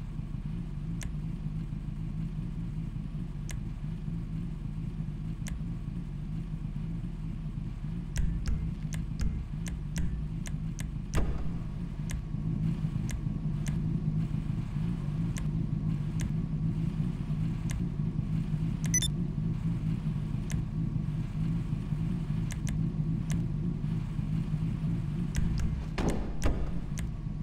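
Menu clicks tick now and then.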